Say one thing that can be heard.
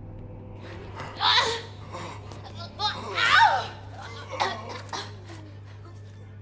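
A man grunts and gasps while struggling.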